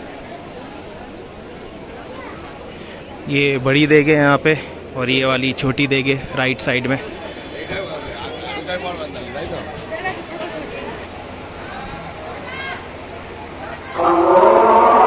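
A crowd murmurs nearby.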